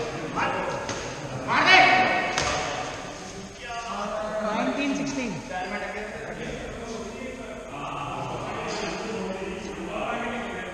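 Men call out to each other across a large echoing hall.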